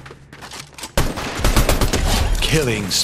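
A gun fires in short bursts.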